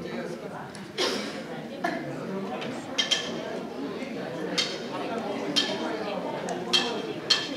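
A drummer strikes cymbals with sharp crashes.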